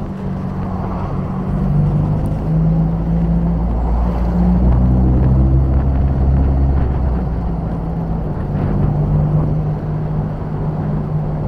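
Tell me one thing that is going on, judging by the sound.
A car engine hums low and steady, rising and falling in pitch as the car drives.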